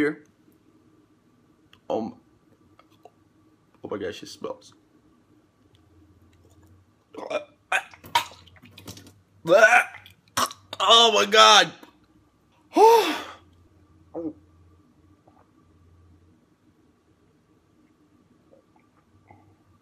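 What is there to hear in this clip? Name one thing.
A young man sips and slurps a drink.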